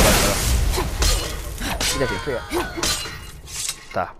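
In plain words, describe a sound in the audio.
Flames burst and roar.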